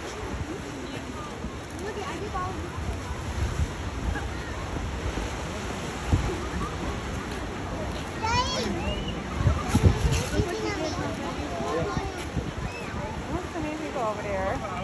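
Waves wash and break against rocks outdoors.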